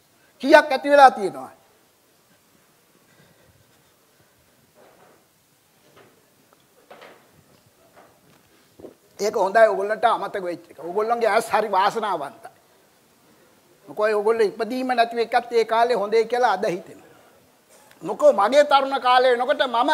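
An elderly man speaks with animation to an audience.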